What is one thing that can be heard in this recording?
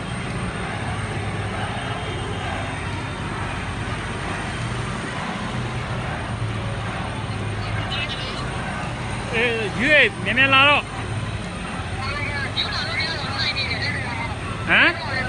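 A large crowd roars and chants in the distance outdoors.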